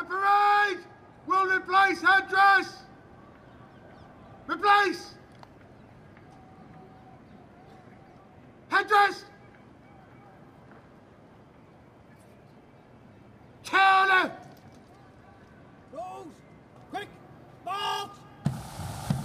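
A man shouts drawn-out drill commands outdoors.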